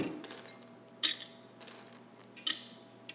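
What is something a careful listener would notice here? Coffee beans click and rustle as they are handled.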